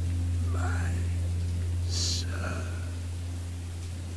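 An elderly man speaks weakly and breathlessly, close by.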